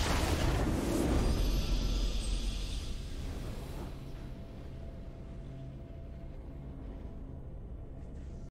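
A triumphant victory fanfare swells and then slowly fades.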